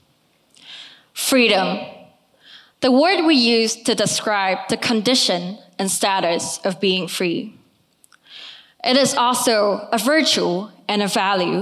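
A young woman speaks calmly into a microphone in a large hall.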